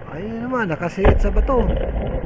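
A spear gun fires underwater with a sharp thud.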